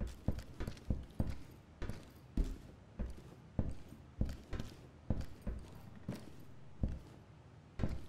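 Footsteps thud at a steady walking pace on a hard floor.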